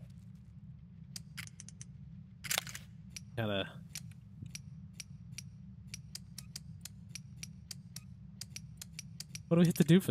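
A metal padlock clicks as its switches slide into place.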